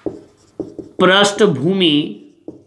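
A man speaks with animation, close by in a small echoing room.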